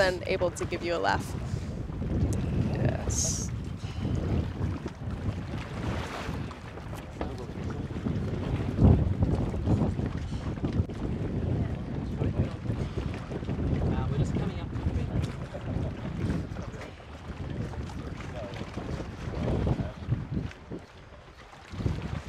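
A young woman breathes heavily after surfacing.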